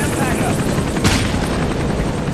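A single gunshot rings out.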